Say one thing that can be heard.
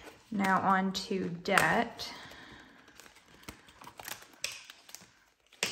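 A plastic zipper pouch crinkles as hands handle it.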